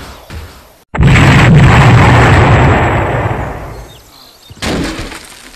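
A loud explosion booms and slowly rumbles away.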